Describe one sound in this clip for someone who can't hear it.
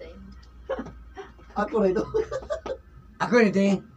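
A woman laughs close by.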